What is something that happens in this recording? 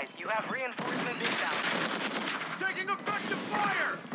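Rapid gunshots fire at close range.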